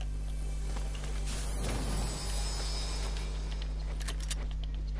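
A treasure chest opens with a bright shimmering chime.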